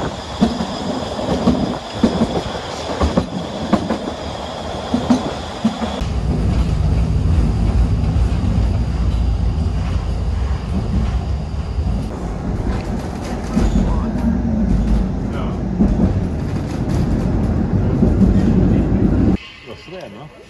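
Wheels click and knock on rail joints.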